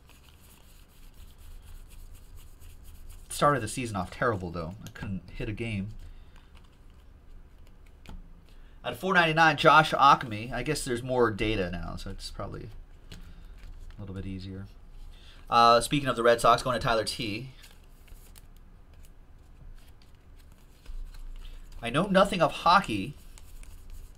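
Trading cards flick and rustle against each other.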